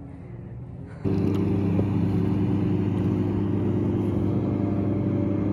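A paddle dips and splashes in the water.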